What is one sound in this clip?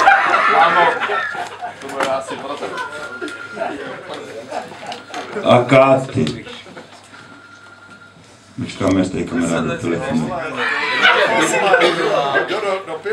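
An elderly man reads aloud into a microphone, heard through a loudspeaker in an echoing room.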